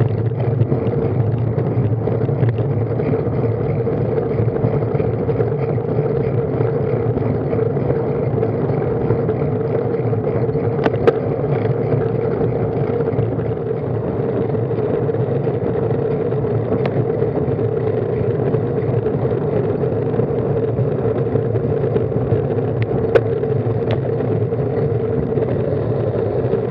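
Wind rushes over the microphone of a road bike riding on asphalt.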